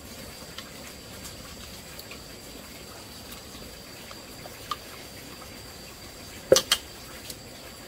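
A wooden stick stirs and knocks against a metal pot.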